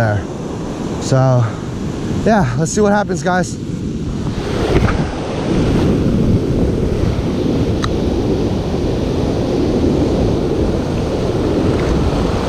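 Waves crash and wash onto a shore.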